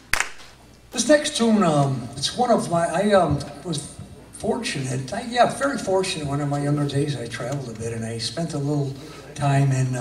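An elderly man sings into a microphone.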